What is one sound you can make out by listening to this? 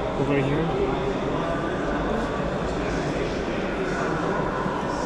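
A crowd of adult visitors murmurs and chatters in a large echoing hall.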